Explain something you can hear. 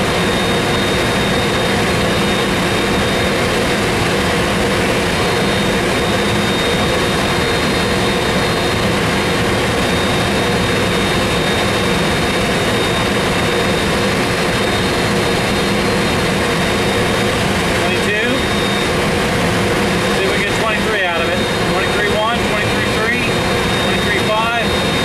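A jet engine hums steadily with a thin, high whine.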